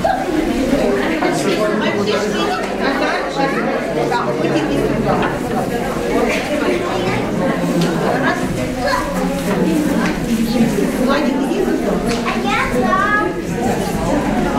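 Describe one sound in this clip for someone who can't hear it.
A group of young children chatter and call out in a room.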